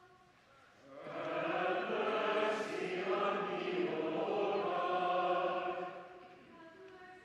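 A choir and congregation sing together in a large echoing hall.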